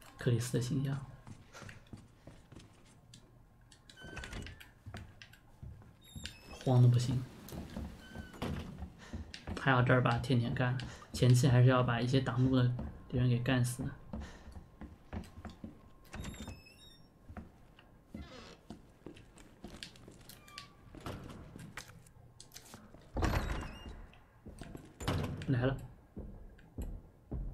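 Footsteps walk slowly across a hard floor.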